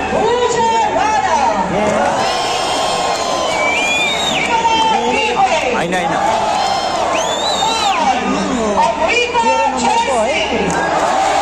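A large crowd of men and women cheers and shouts loudly in an open stadium.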